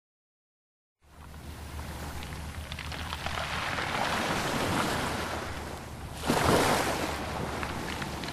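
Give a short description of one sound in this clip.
Waves crash and wash up onto a beach.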